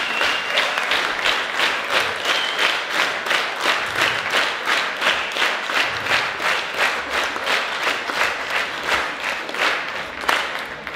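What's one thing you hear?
An audience claps along in a steady, fast rhythm.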